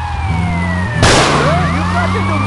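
A van crashes into a car with a bang.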